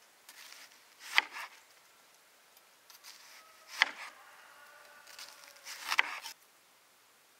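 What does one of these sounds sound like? A knife chops through onion onto a wooden board.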